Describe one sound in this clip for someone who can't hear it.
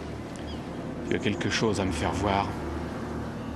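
A man speaks quietly and gravely.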